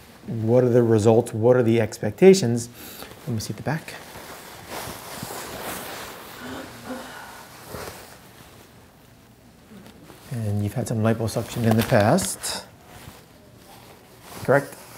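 A man speaks calmly and clearly, close by.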